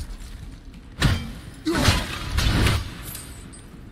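An axe whooshes through the air with an icy crack.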